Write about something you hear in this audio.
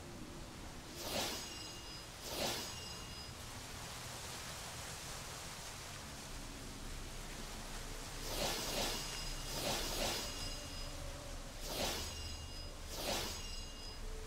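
Bright magical chimes sparkle with shimmering whooshes, again and again.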